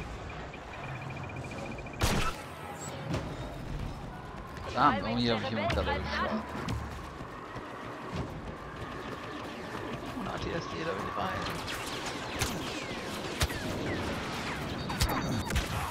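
Laser blasters fire in short bursts.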